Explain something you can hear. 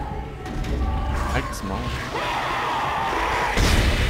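A heavy metal door slides open.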